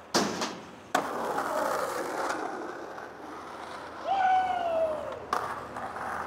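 Skateboard wheels roll and rumble on rough pavement.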